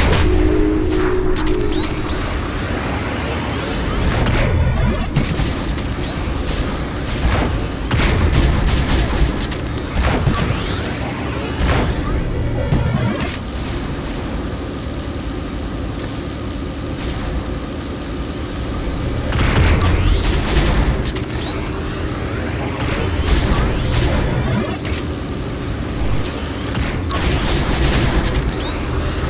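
Game music plays steadily.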